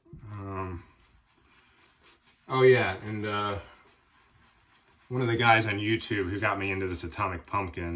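A shaving brush swishes lather against a man's cheek.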